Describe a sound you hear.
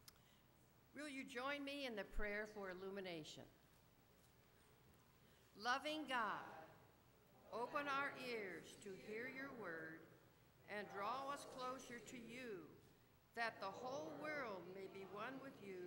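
An elderly woman reads aloud calmly into a microphone.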